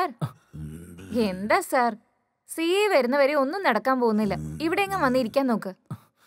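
A young woman speaks playfully.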